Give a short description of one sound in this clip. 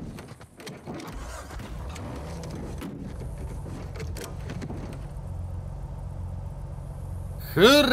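A jeep engine starts and rumbles steadily.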